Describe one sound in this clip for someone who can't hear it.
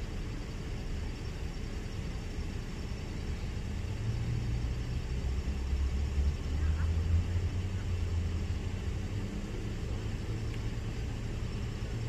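A car engine idles nearby with a low rumble.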